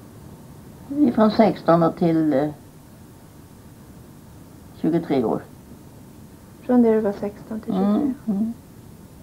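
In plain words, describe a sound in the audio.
An elderly woman speaks softly nearby.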